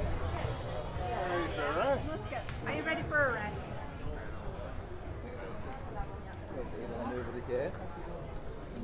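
Adult men and women chat nearby outdoors.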